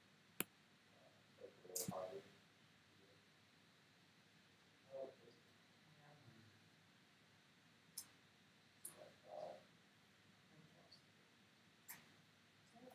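Short clicks sound now and then as game cards are moved.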